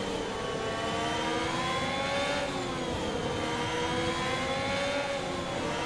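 A racing car engine whines at high revs, rising in pitch and dropping briefly at each gear change.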